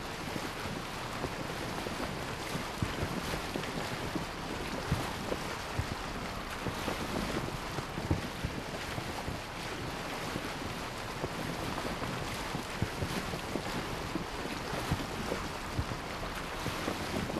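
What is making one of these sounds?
A sail flaps and creaks in the wind.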